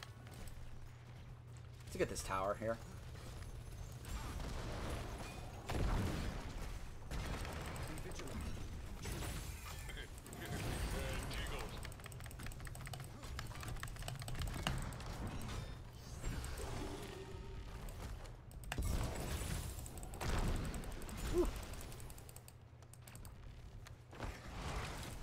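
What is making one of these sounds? Combat sounds of blasts, zaps and impacts clash rapidly.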